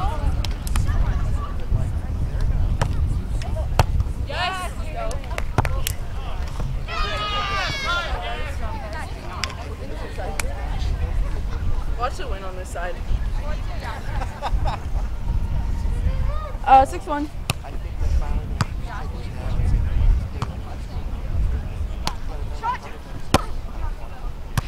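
A volleyball is struck with a dull thump.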